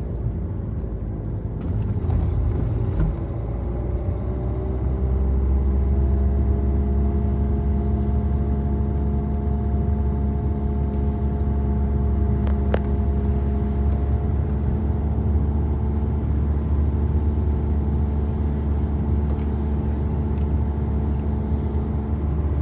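Tyres roll on smooth road with a low rumble.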